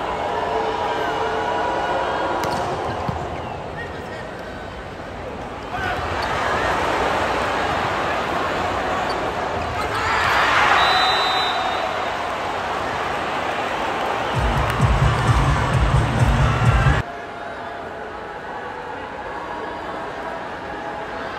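A large crowd cheers and chants in a big echoing arena.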